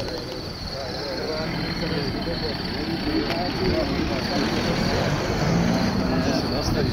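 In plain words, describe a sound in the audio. A group of older men chat casually nearby outdoors.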